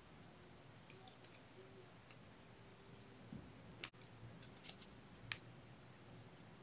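Thin metal wire clicks and scrapes softly as fingers wrap it.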